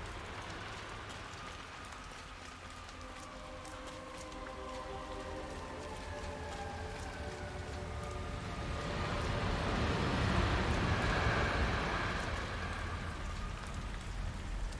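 Rain patters steadily outdoors.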